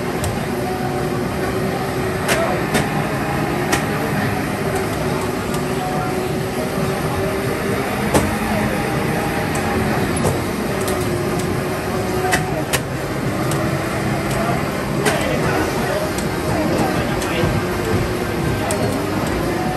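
Game sound effects and clicks burst out now and then from loudspeakers.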